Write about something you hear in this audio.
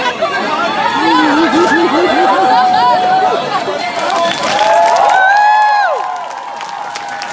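A large crowd of young men and women whoops and cheers loudly outdoors.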